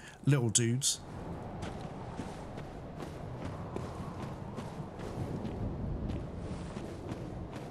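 Footsteps crunch through grass and dirt.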